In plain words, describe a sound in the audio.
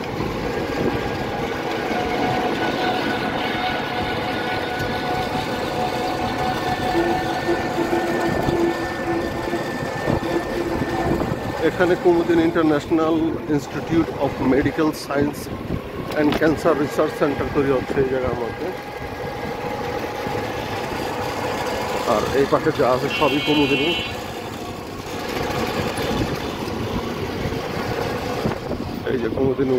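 Tyres rumble over a paved road.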